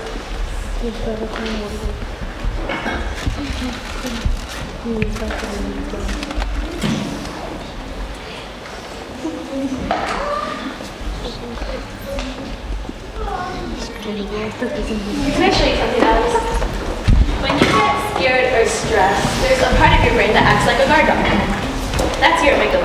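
A young girl speaks briefly in reply.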